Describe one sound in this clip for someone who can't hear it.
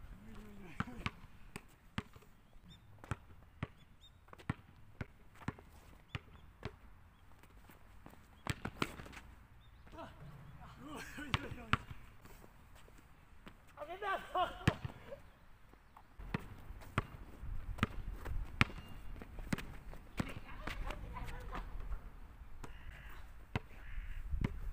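A basketball bounces repeatedly on a hard outdoor court.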